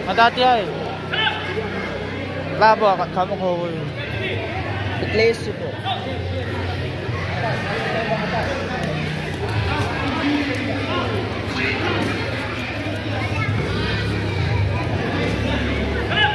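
Kicks thud against body protectors.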